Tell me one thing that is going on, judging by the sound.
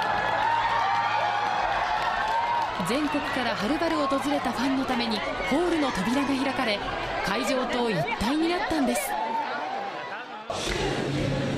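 A large crowd of fans screams and cheers.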